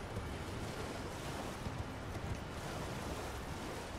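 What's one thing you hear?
Water splashes under galloping hooves.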